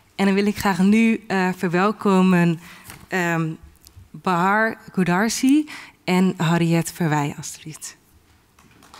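A young woman speaks with animation into a microphone in a hall.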